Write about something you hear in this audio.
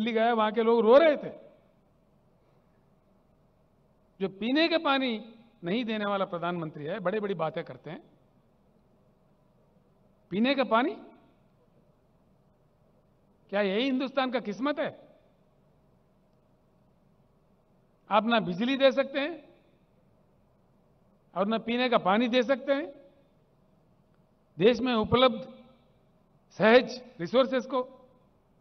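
An elderly man speaks forcefully into a microphone through loudspeakers, in short bursts with pauses.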